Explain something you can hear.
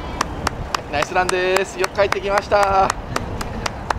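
A woman cheers loudly nearby outdoors.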